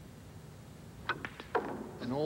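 A cue stick strikes a billiard ball with a sharp click.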